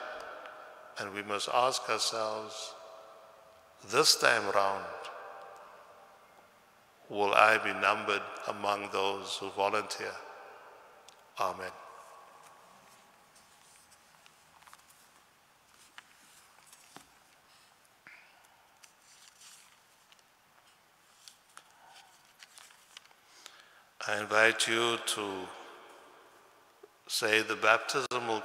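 A man speaks calmly into a microphone, with a long echo as in a large hall.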